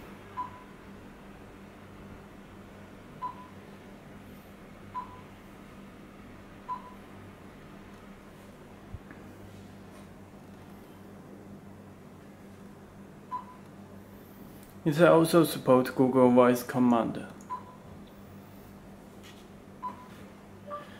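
A touchscreen gives short electronic beeps when tapped.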